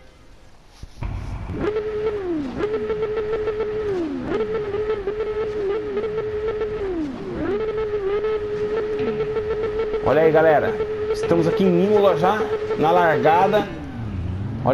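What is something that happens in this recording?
A motorcycle engine revs up and down repeatedly, close by.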